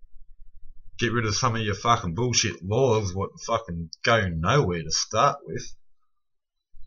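A man speaks calmly and close by, as if into a computer microphone.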